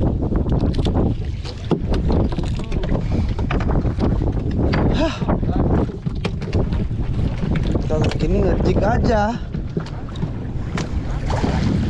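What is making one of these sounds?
Waves splash and slap against a small boat's hull.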